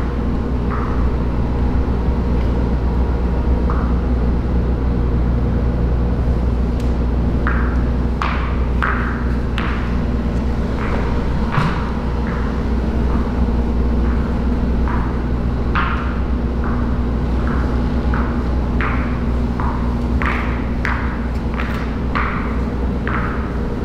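A squeegee swishes across a wet, slick floor.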